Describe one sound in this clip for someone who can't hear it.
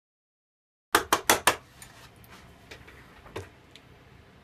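Small objects knock onto a wooden workbench.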